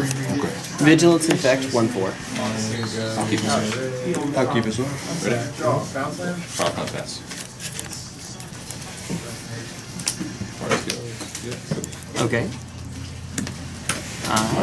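Playing cards slide and tap on a table.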